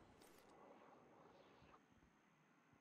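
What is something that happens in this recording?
A man speaks quietly into a microphone.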